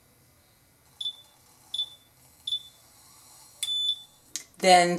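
A small device beeps one time and then several more times.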